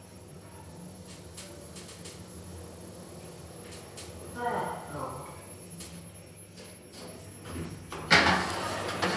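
An elevator car hums steadily as it moves.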